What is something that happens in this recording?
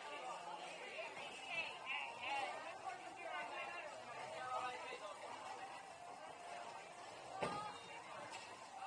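A crowd of adults and children chatters all around in a large echoing hall.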